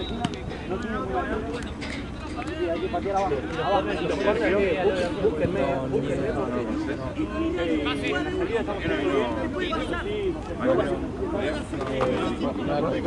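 Young men shout to each other across an outdoor field.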